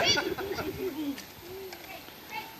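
A man laughs outdoors.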